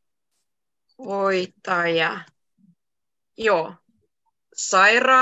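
A young woman speaks clearly and slowly over an online call.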